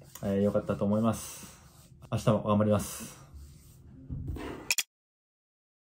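A young man speaks calmly and close.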